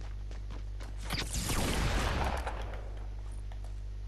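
A shotgun fires with a loud, booming blast.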